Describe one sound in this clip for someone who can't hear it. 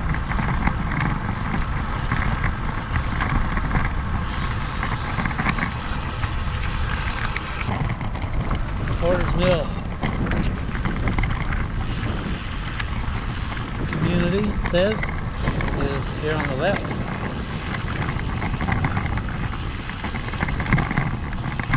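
Wind rushes and buffets loudly past a moving bicycle.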